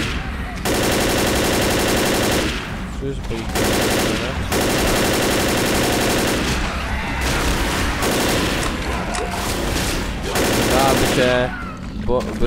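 A rifle fires rapid bursts of shots that echo in a tunnel.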